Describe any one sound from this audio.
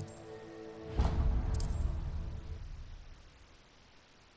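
A deep rumbling whoosh swells and fades away.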